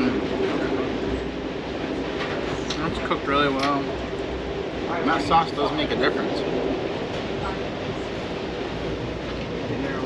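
A knife and fork scrape on a plate.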